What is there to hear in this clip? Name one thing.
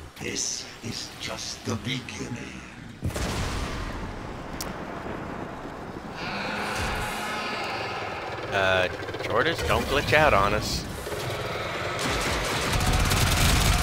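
Gunfire and explosions boom in a game battle.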